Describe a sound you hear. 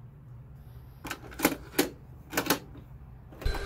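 A cassette clicks into a tape player's slot.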